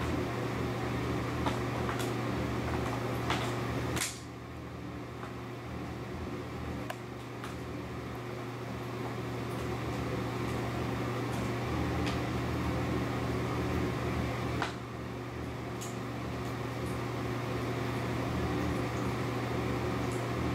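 A duck pecks and nibbles at food on a hard floor, with small clicks and taps.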